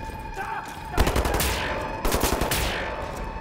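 An explosion booms with a burst of fire.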